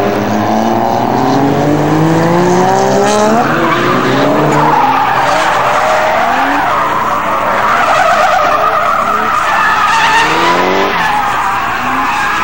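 Racing car engines roar past, revving up and down through the gears.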